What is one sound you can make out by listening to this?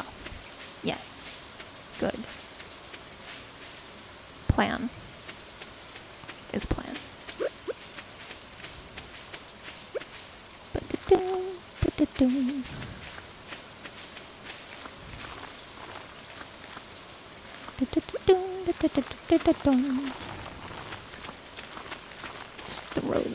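Short knocks and thuds sound as a farmer works the field.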